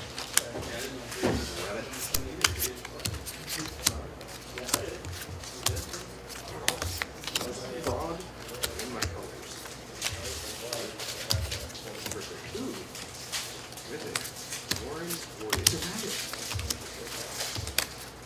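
Fingers riffle through a small stack of playing cards.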